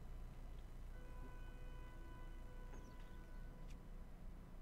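A soft chime rings.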